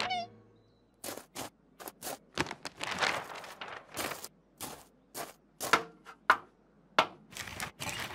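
A paper sheet rustles as it is rolled up and lifted.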